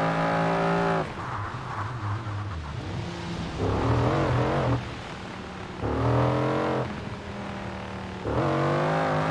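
A car engine drops and revs as the driver brakes.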